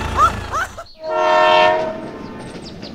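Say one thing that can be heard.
A toy train's whistle toots.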